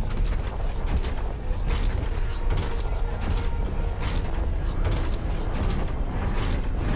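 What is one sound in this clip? A heavy machine rumbles low and steadily.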